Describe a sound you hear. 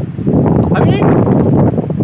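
A boy speaks loudly close by.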